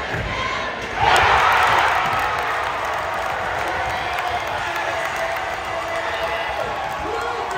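A crowd erupts in loud cheers after a dunk.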